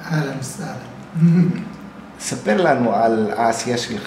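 A middle-aged man laughs softly.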